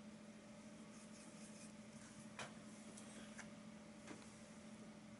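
A paintbrush dabs and scrapes softly on a canvas.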